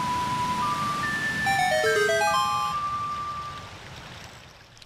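An ocarina plays a short, gentle melody.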